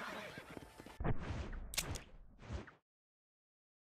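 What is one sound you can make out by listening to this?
A menu chimes as it opens.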